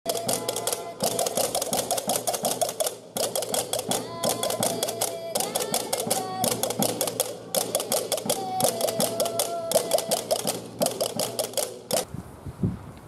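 Small guitars strum a lively folk tune.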